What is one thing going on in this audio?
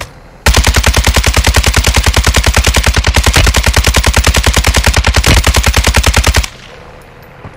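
A helicopter's rotor thumps fast and loud.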